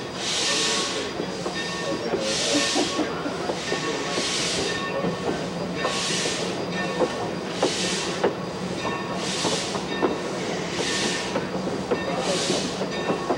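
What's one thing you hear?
A steam locomotive chuffs in slow, regular bursts of hissing steam.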